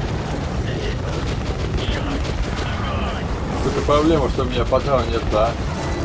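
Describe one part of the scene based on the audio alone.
A flamethrower roars with a low rushing noise.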